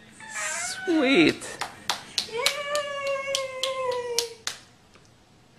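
A young woman claps her hands.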